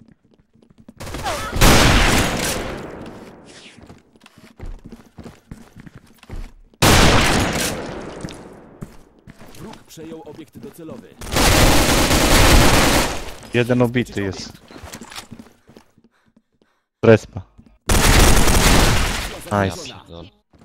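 A gun fires loud, booming shots, one at a time.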